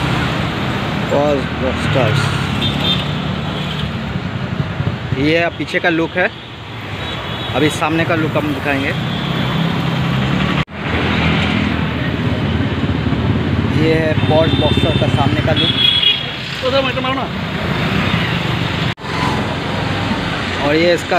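A young man talks close by in a casual voice.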